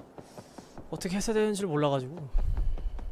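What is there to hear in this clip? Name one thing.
A young man talks briefly into a close microphone.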